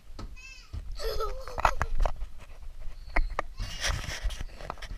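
A young boy laughs close by.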